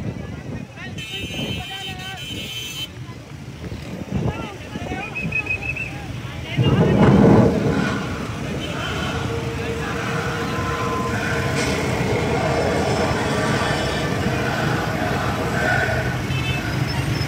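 Many motorcycle engines rumble and buzz close by.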